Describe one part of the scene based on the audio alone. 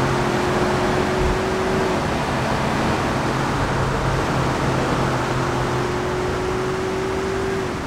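A car engine roars steadily as it drives fast.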